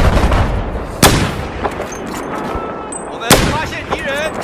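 A sniper rifle fires loud sharp shots.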